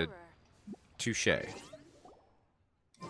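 A soft chime sounds as a game menu opens.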